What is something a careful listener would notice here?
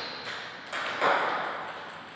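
A ping-pong ball bounces on a table before a serve.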